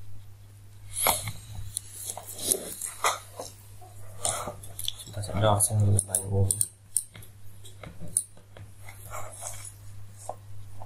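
A hand rustles and bumps very close by.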